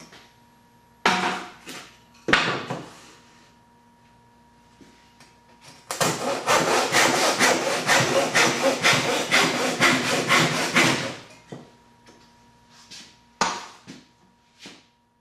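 Wooden pieces knock on a workbench.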